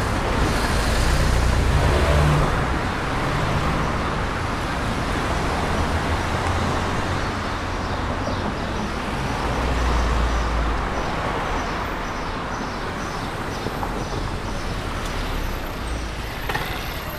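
A motor scooter engine hums close by.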